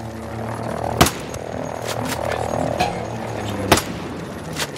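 A rifle fires loud, sharp shots.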